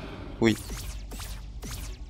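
A magic spell shimmers and chimes.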